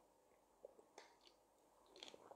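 A man gulps water from a plastic bottle.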